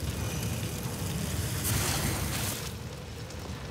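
Flames whoosh in a burst of fire.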